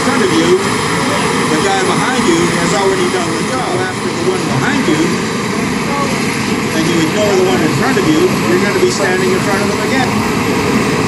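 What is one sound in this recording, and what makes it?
A man talks nearby over the engine noise.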